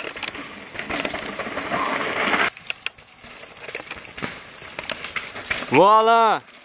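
Bicycle tyres rattle and bump over a rocky trail.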